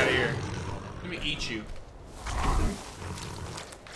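A beast tears and chews at flesh.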